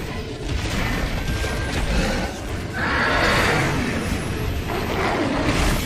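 A weapon sprays fire with a loud, roaring hiss.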